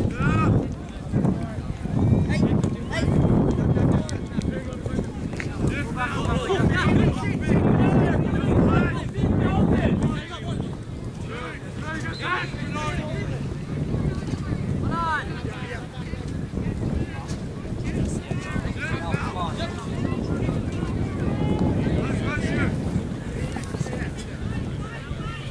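Spectators shout and cheer nearby outdoors.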